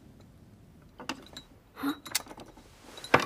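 A key rattles and clicks in a metal lock.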